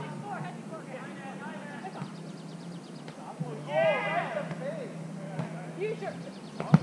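Young women call out to each other outdoors.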